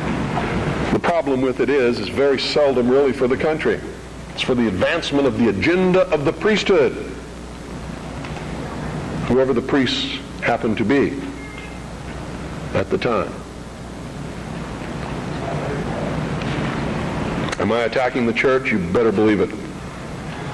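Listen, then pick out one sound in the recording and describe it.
A middle-aged man speaks slowly into a microphone, with pauses, in an echoing hall.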